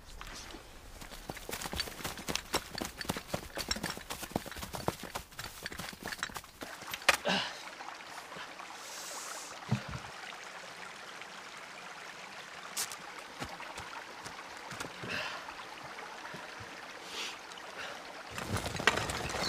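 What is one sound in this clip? Many footsteps run over dirt and stones.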